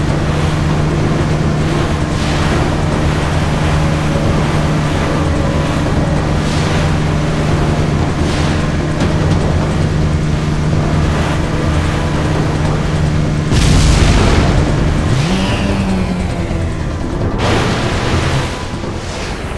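Water sprays and splashes in a rushing wash.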